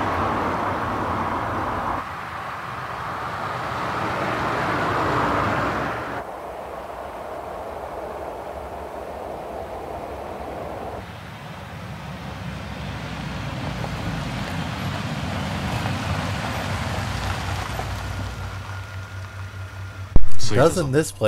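A car engine hums and roars as a car drives along a road.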